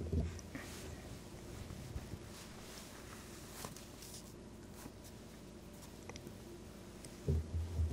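Cloth rustles as a man puts on a cap.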